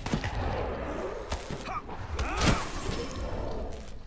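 A magic blast bursts with a whoosh.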